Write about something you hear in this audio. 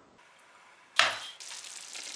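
An oven door shuts with a thud.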